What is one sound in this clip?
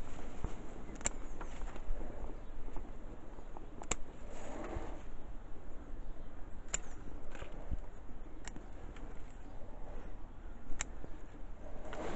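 Leaves rustle as they are handled.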